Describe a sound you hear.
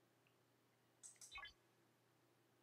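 A bright descending electronic chime sounds.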